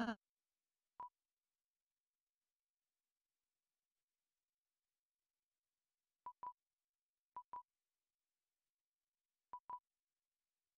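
Short electronic menu beeps sound a few times.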